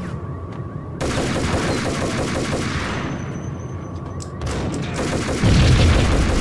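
Pistol shots bang loudly and echo.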